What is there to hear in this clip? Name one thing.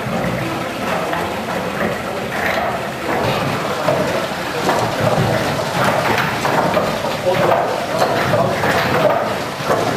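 Wooden mill machinery rumbles and clatters steadily.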